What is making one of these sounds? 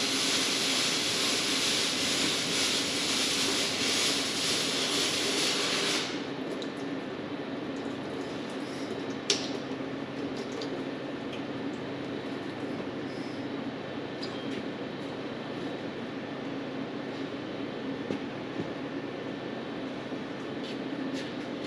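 A rag rubs along a metal pipe.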